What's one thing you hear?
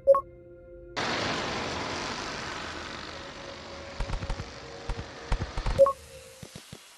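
A swarm of meteors rushes in with a loud roaring hiss that slowly fades.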